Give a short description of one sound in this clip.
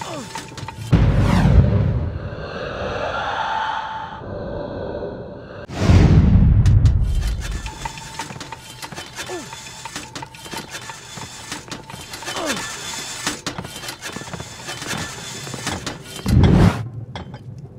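A deep whooshing rush swells and fades.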